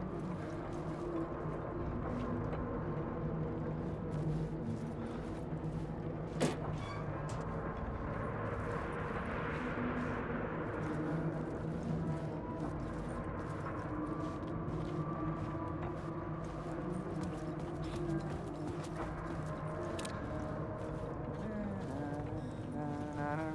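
Footsteps crunch slowly over debris.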